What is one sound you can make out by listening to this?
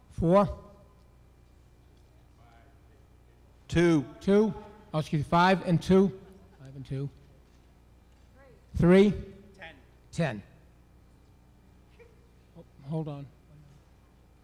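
A middle-aged man speaks into a microphone in bursts, heard through loudspeakers in a large hall.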